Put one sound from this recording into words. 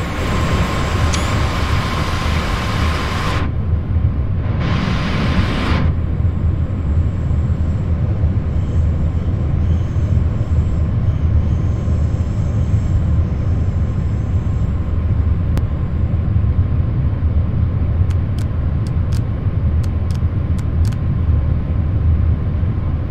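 A train rumbles along the rails with a steady low drone.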